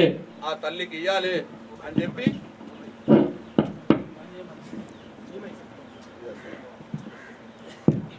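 A man speaks forcefully into a microphone through loudspeakers.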